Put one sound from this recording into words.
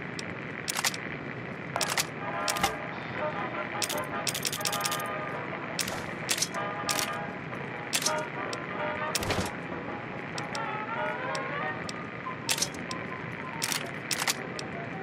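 Short electronic clicks sound again and again.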